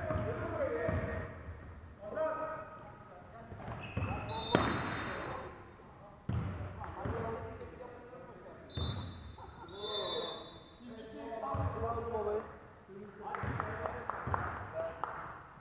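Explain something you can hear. Young men shout to each other in an echoing hall.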